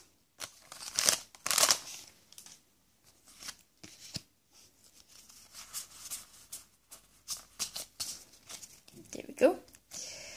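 Cards rustle and slide against each other as hands shuffle them.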